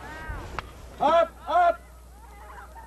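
A man shouts loudly twice nearby.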